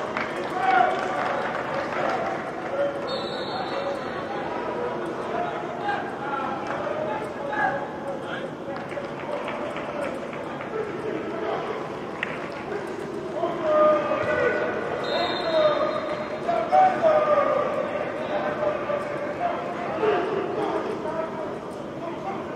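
Several young men talk and call out in a large echoing hall.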